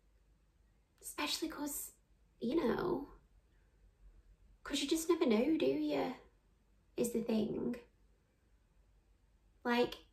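A young woman speaks calmly and softly, close to the microphone, in short phrases.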